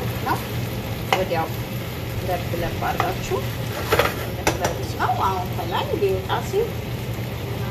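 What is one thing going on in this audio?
A utensil clinks against a pan.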